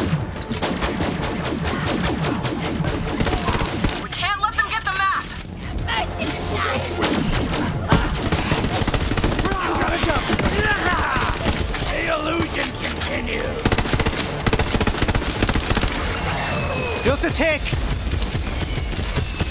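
Rapid gunfire crackles and bangs without pause.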